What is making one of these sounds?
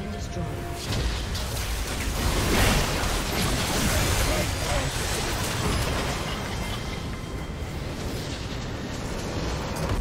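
Video game combat effects clash and crackle.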